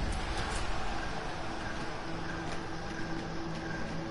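A fire crackles and roars nearby.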